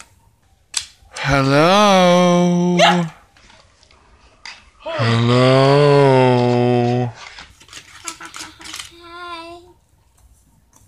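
Plastic toy parts click and snap as a child handles them.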